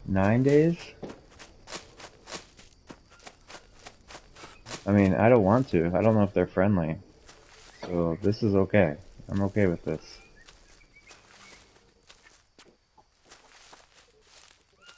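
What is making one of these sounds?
Footsteps crunch steadily through dry leaves and undergrowth.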